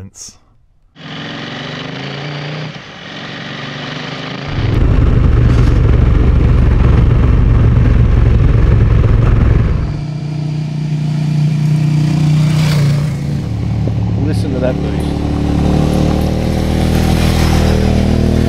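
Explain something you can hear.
A motorcycle engine rumbles and revs.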